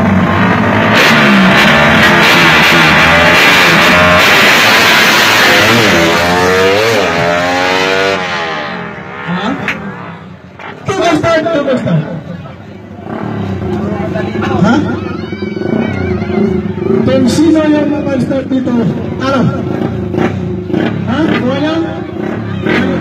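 A motorcycle engine revs loudly and roars away.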